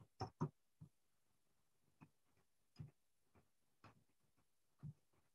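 Keys click sharply on a nearby computer keyboard, in short bursts.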